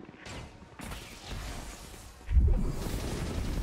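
A soft whoosh swells as a bubble inflates.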